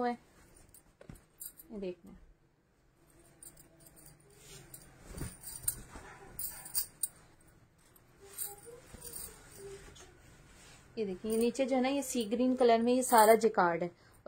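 Cloth rustles softly as fabric is handled and unfolded.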